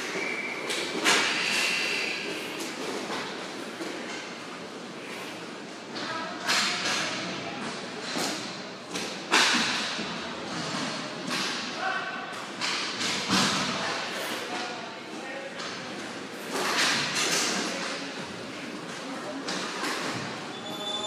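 Skate wheels roll and scrape on a hard floor.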